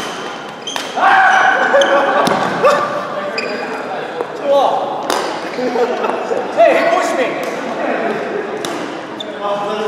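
Men talk casually between rallies.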